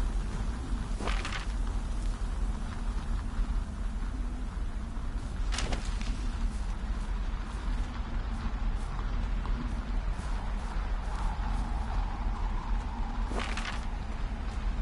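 Paper rustles as a map unfolds.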